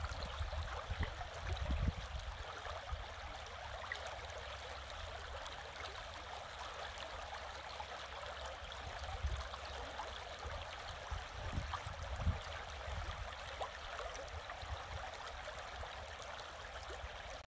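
A shallow stream babbles and splashes steadily over stones.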